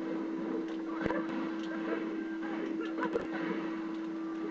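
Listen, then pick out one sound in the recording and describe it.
Electric zaps and blasts crackle from a video game.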